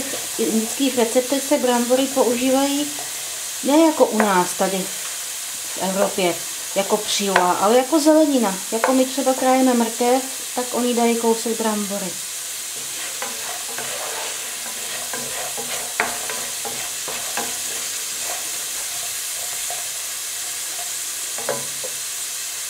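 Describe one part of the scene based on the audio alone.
A wooden spoon stirs in a metal pot.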